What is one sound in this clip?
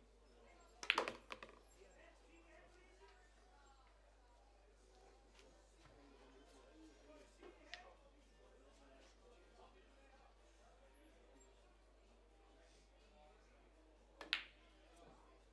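Pool balls clack sharply together.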